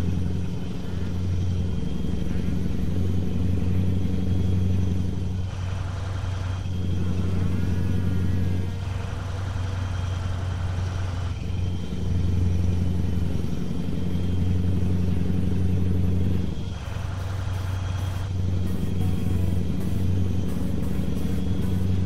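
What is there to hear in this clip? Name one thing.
A truck engine drones steadily.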